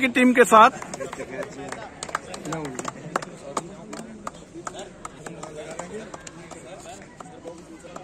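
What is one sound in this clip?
Hands clap a few times.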